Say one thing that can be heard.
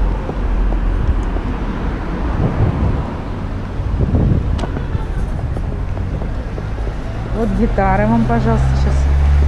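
Wind buffets and rumbles loudly as a scooter rides along outdoors.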